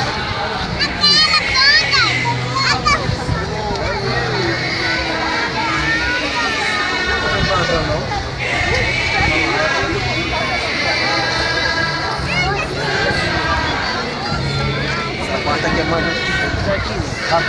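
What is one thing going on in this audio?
Many people sing together loudly outdoors.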